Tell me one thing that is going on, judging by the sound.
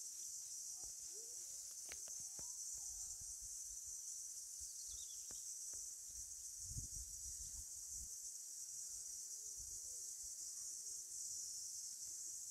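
Chickens cluck softly nearby.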